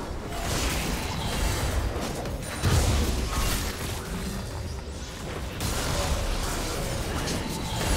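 Game spells whoosh and crackle in a fast fight.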